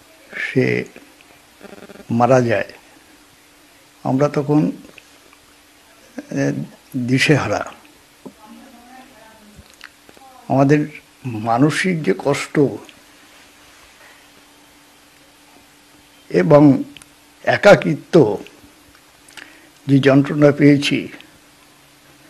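An elderly man speaks calmly and close, in short bursts with pauses.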